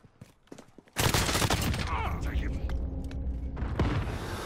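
A rifle fires rapid, loud bursts.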